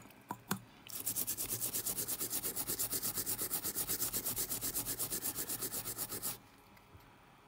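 A cotton swab scrubs rapidly back and forth on a circuit board.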